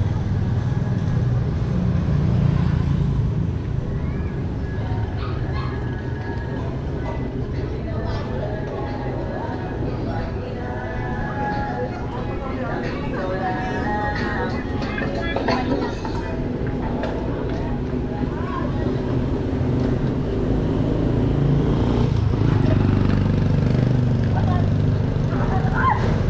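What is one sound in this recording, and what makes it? A motorcycle engine hums steadily close by as it rides along a street.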